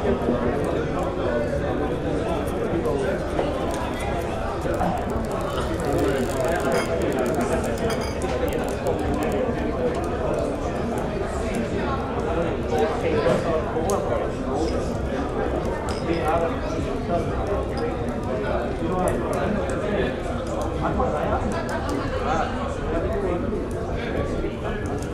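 A crowd of men and women chatter and murmur indoors.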